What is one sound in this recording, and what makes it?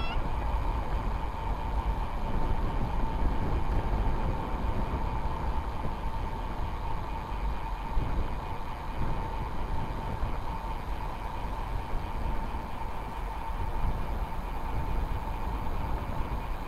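Bicycle tyres hum steadily on smooth pavement.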